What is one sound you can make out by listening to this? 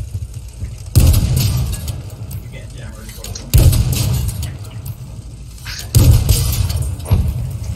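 A tank cannon fires with heavy booming blasts.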